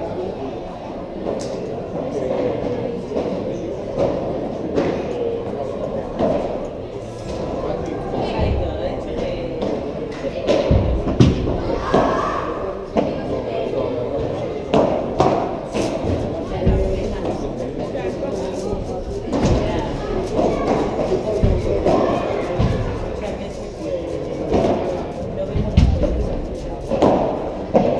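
Footsteps squeak and shuffle on the court.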